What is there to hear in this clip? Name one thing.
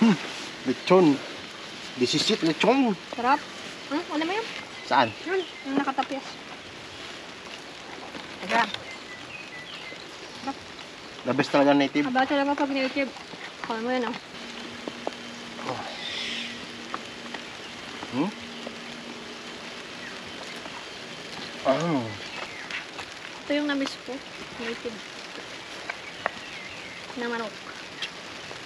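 A young man talks casually up close.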